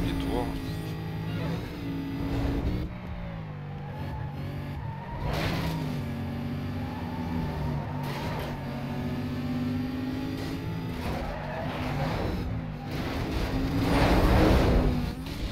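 A race car engine roars at high revs, dropping in pitch with each gear change.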